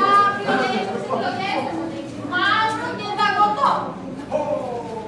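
A young woman speaks with animation on stage.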